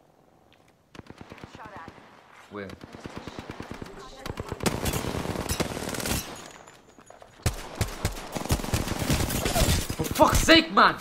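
Rapid gunfire rattles in bursts, close and loud.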